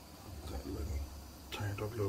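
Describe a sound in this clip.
Metal pot handles clink as a hand grips them.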